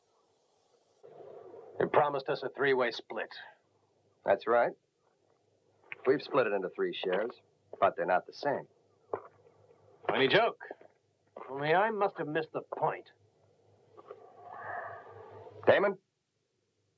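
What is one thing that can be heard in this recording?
A young man answers in a firm voice.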